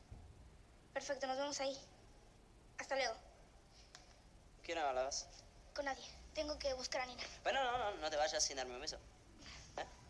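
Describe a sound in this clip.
A young girl speaks with feeling, close by.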